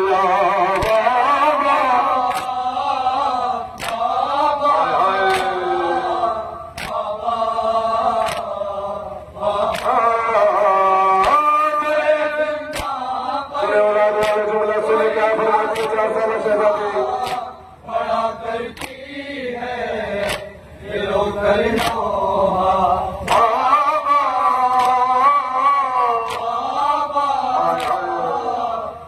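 A crowd of men and boys beat their chests in a slow, steady rhythm.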